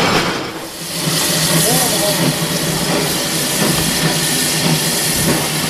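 A steam locomotive hisses steadily nearby.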